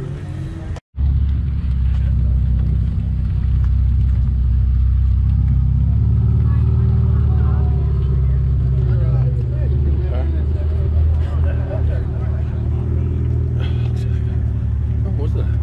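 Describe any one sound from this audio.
A sports car engine rumbles deeply as the car rolls slowly past.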